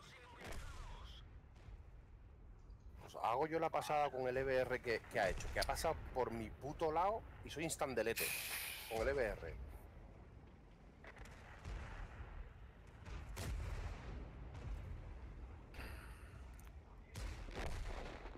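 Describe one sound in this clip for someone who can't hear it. Tank cannon shots and shell explosions boom.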